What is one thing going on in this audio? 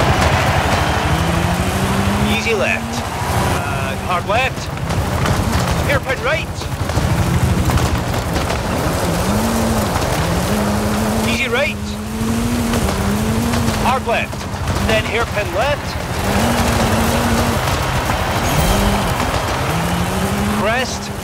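A rally car engine roars and revs up and down as gears change.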